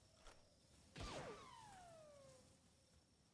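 A pickaxe strikes rock with a sharp ringing knock.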